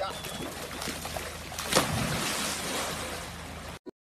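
A person splashes into a pool.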